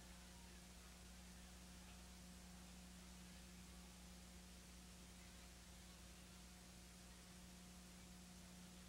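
A large crowd murmurs faintly in an open stadium.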